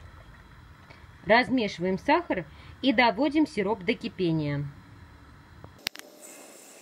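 Liquid bubbles gently as it simmers.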